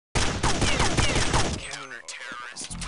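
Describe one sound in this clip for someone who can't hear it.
Glass shatters.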